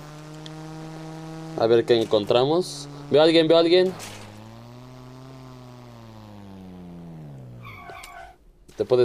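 A quad bike's engine hums steadily, then rises and falls in pitch before fading out.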